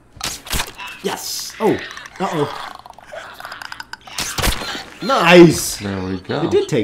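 A young man and a young woman talk and exclaim with animation close to a microphone.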